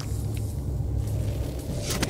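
Electricity crackles and buzzes between metal posts.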